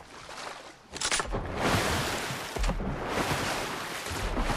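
A game character splashes into water.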